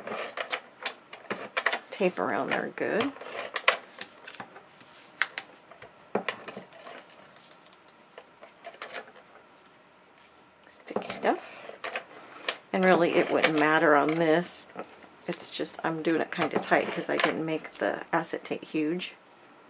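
A tape dispenser gun clicks and whirs as tape rolls out.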